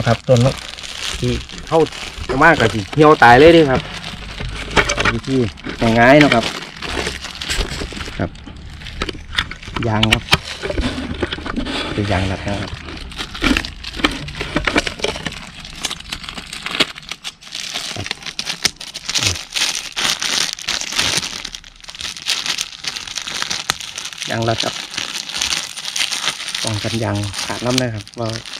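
A plastic bag crinkles in a man's hands.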